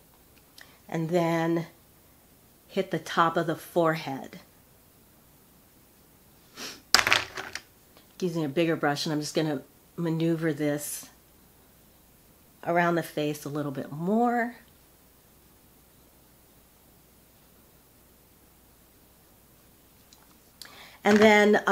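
An older woman speaks calmly and close by, in short phrases.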